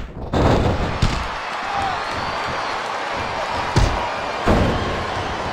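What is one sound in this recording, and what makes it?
Heavy body slams thud sharply a few times.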